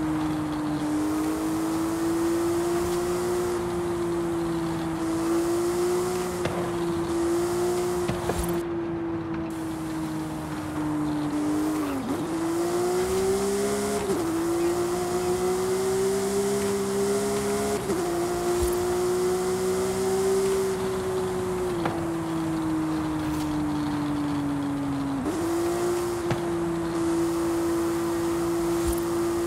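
Tyres hiss on asphalt at speed.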